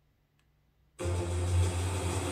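Music plays loudly from a television speaker.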